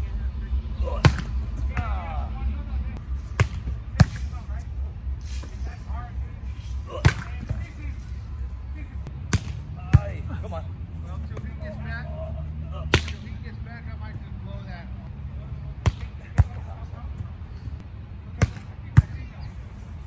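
A volleyball is struck with a sharp slap of hands.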